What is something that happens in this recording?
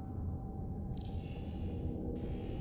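A gun fires a beam with a buzzing hiss.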